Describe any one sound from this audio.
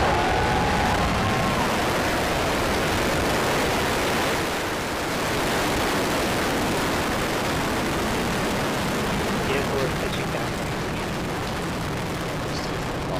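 A rocket engine roars loudly and steadily as a rocket lifts off.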